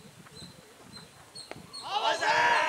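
A cricket ball knocks against a bat.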